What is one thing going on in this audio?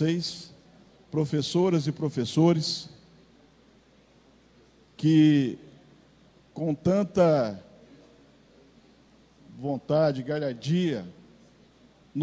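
A middle-aged man speaks into a microphone in measured bursts with pauses.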